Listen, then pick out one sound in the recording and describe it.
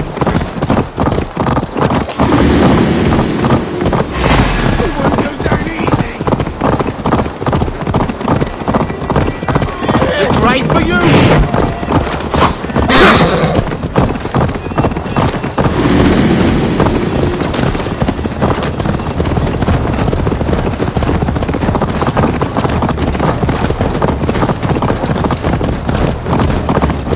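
A horse's hooves pound steadily at a gallop.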